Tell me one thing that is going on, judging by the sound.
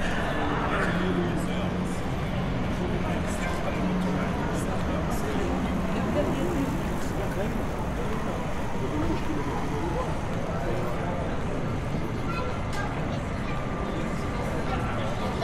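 Several people chat nearby outdoors on a busy street.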